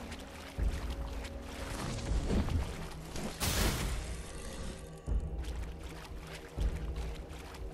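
Water splashes around moving figures.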